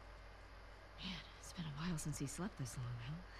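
A young woman speaks casually and warmly.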